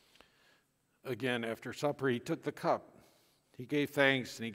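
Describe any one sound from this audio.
A man speaks or chants slowly through a microphone in a large echoing room.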